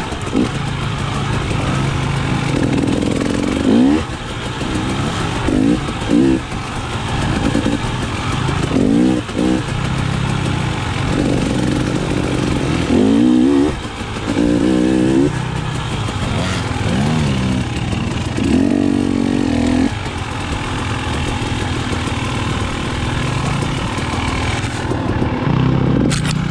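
A dirt bike engine revs and roars up close, rising and falling.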